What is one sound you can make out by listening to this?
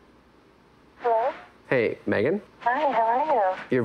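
A young man talks calmly on a phone, close by.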